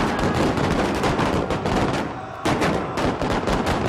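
Men shout and cry out in a struggle.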